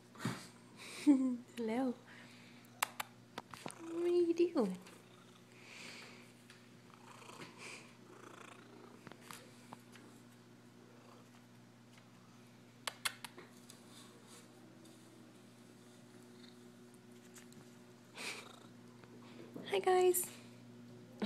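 A cat meows loudly close by.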